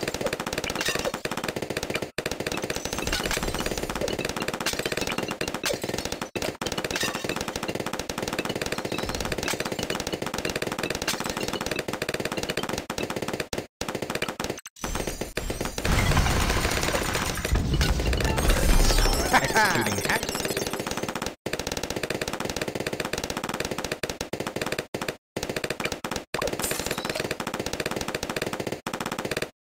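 Balloons pop rapidly in a game.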